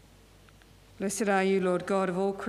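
A man chants loudly in song through a microphone.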